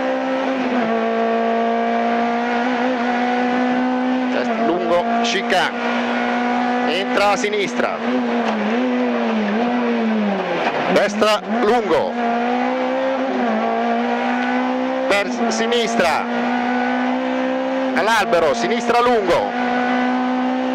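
A car engine roars loudly at high revs from inside the cabin, rising and dropping with gear changes.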